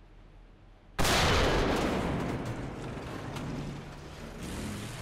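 A tank cannon fires with a sudden loud boom that rolls away slowly.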